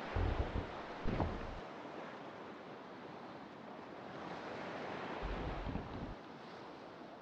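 Waves wash and splash steadily against a wooden ship's hull.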